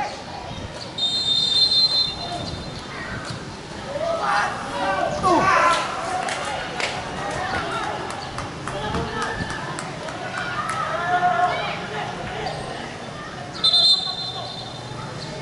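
A referee's whistle blows shrilly twice.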